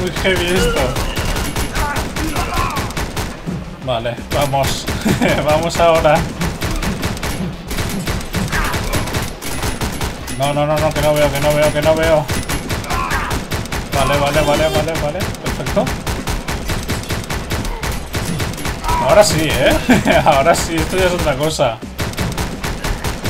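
Gunshots pop in quick bursts.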